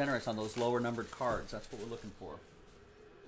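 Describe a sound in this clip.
Plastic wrap crinkles as hands tear it off a box.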